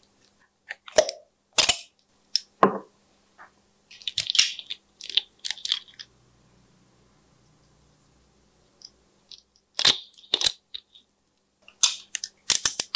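Plastic caps click and snap on and off small bottles.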